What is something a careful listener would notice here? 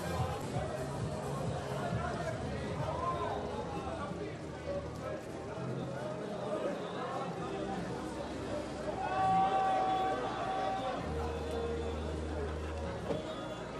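A crowd of men talk and call out nearby, outdoors.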